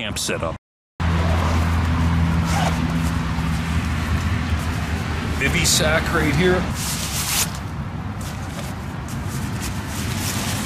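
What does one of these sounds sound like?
Leaves and twigs rustle close by as a hand brushes through bushes.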